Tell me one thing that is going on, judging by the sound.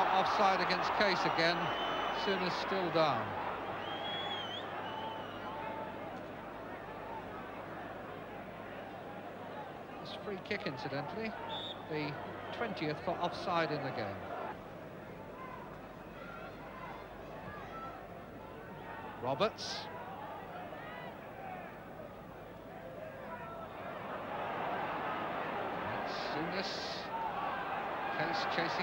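A large crowd cheers and chants loudly in an open stadium.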